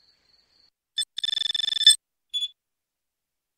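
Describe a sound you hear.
Electronic menu tones beep and chirp rapidly, then stop.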